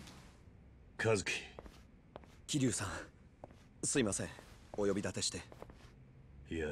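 A young man speaks hesitantly up close.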